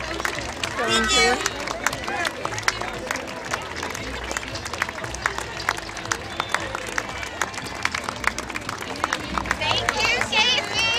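A crowd claps and applauds steadily outdoors.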